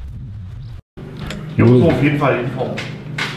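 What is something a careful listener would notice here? A middle-aged man talks and laughs close by.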